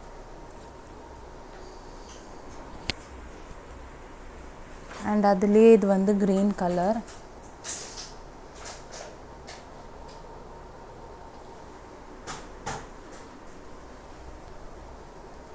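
Cloth rustles softly as it is unfolded and spread out.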